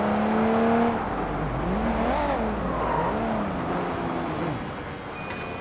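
A car engine revs and slows as the car drives.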